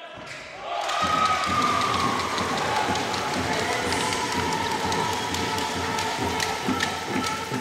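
Spectators cheer and clap loudly in an echoing hall.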